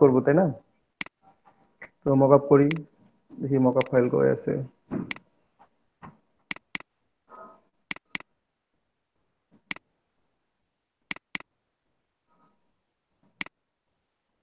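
A computer mouse clicks sharply several times.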